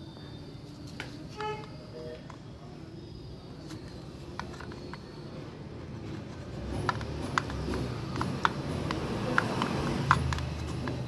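Fingers click and tap against a small plastic pump housing.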